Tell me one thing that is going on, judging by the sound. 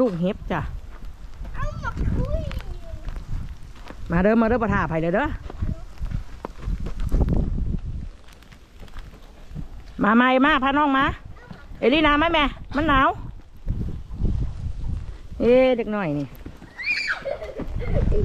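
A young child talks and sings in a high voice nearby.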